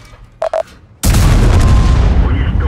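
A tank cannon fires with a loud, sudden boom.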